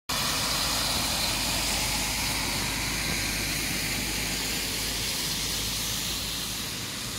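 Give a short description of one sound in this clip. Tyres hiss on the wet road.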